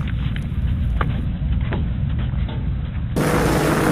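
Footsteps thump on a boat's deck.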